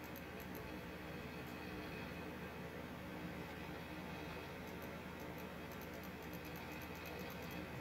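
Fire crackles nearby.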